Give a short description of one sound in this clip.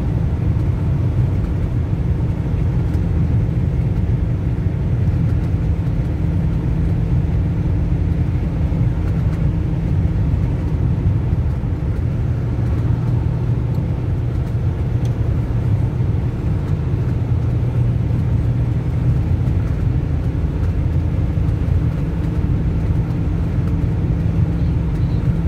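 A car engine hums steadily at speed from inside the car.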